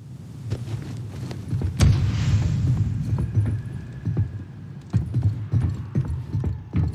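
Heavy footsteps clank on metal stairs.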